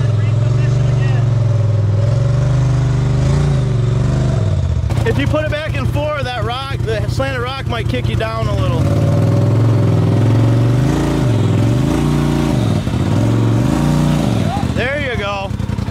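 An off-road vehicle's engine idles and revs up and down close by.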